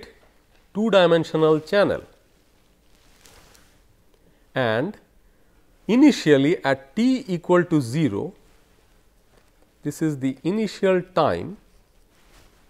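A middle-aged man lectures calmly through a close microphone, in short phrases with pauses.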